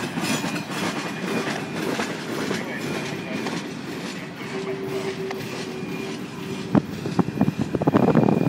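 Train wheels squeal on the rails.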